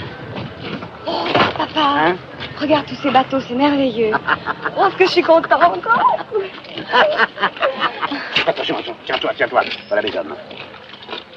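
A young woman talks with animation up close.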